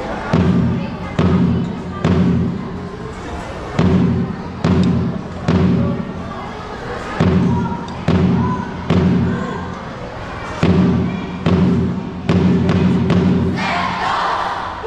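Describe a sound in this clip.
A marching band's drums pound out a heavy rhythm under a large open roof.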